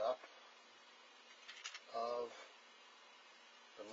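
Small metal parts clink and rattle in a plastic tray.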